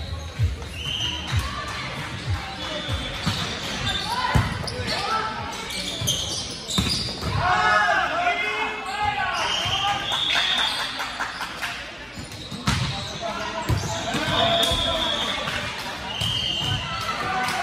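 A volleyball thumps off players' arms and hands in an echoing hall.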